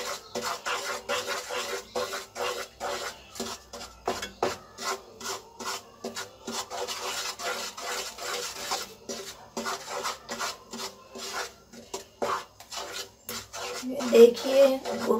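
Sauce sizzles and bubbles in a hot pan.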